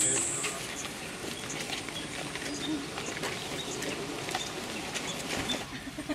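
Footsteps shuffle on pavement as a group walks.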